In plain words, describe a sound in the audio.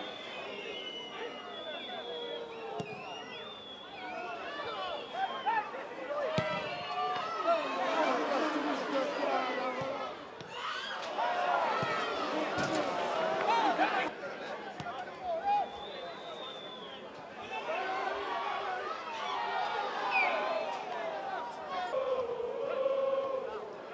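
A football is kicked hard.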